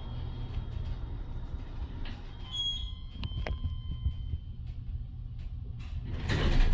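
An elevator car hums and rumbles low and steadily as it moves.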